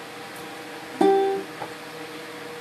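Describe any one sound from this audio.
A ukulele is strummed once.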